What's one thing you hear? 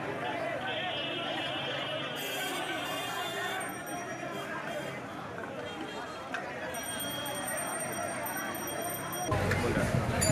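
A large crowd of young men chatters and shouts outdoors.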